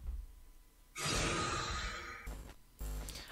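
A harsh, loud screech blares suddenly and then cuts off.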